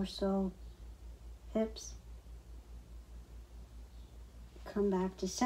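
A woman speaks calmly and softly nearby, in short phrases.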